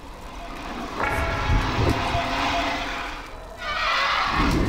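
A magic blast bursts with a loud icy rush.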